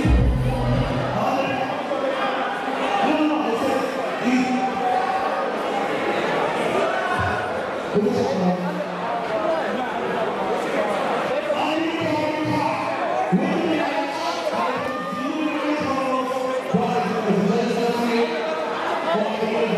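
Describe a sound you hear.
A man speaks energetically into a microphone over loudspeakers in a large echoing hall.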